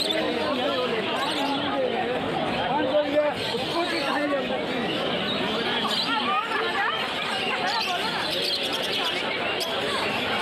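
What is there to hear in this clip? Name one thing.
Birds chirp and squawk in cages.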